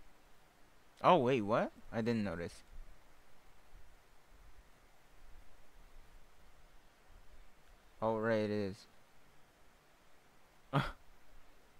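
A young man speaks briefly into a close microphone, with pauses between short phrases.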